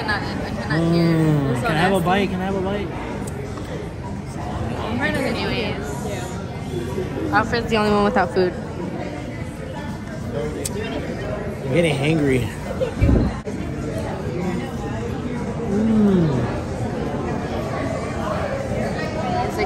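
Chatter of diners fills a busy room.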